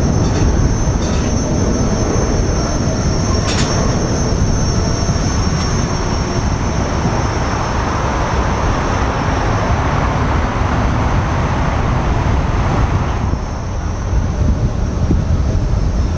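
Skate wheels roll and rumble on pavement.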